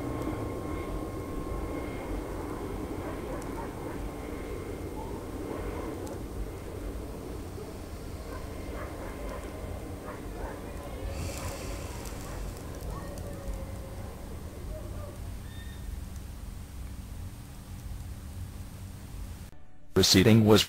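An elderly man speaks quietly, close by.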